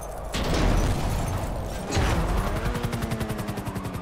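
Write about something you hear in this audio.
A car lands with a heavy thud.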